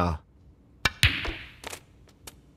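Snooker balls clack against each other.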